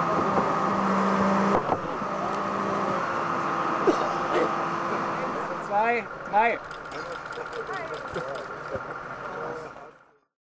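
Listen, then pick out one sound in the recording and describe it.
An excavator engine hums steadily.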